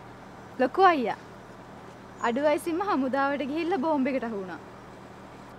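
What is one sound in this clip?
A young woman speaks brightly and with animation, close by.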